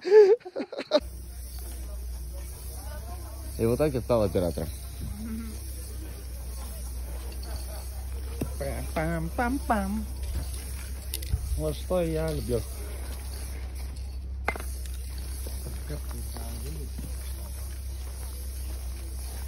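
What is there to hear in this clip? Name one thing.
Spray cans hiss steadily against a wall.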